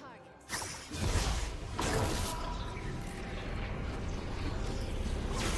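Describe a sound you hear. Magic spell effects whoosh and crackle in a video game.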